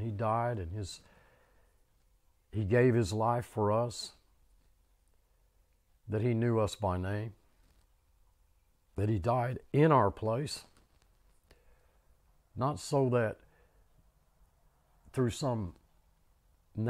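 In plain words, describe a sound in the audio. An elderly man speaks slowly into a close microphone, pausing between short phrases.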